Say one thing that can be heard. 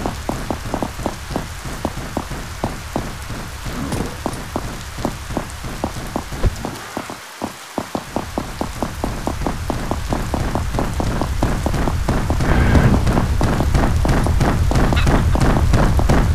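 Footsteps tread steadily on stone paving.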